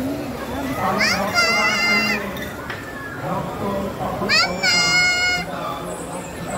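Children shriek excitedly on a spinning ride.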